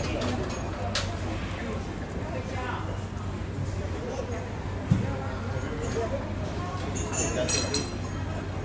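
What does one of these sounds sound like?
A knife clinks against a ceramic plate.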